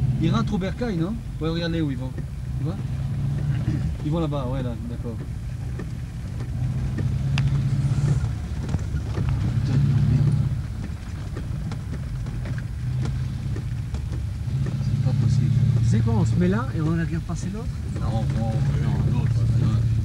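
A heavy truck engine rumbles steadily as the truck drives ahead.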